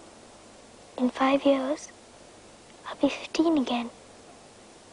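A young girl speaks softly nearby.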